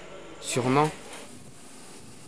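A steam iron hisses.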